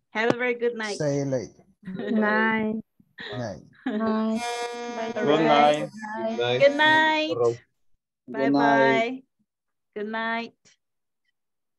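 A woman speaks with animation and laughs over an online call.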